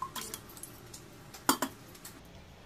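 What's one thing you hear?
A metal ladle taps against a metal pot.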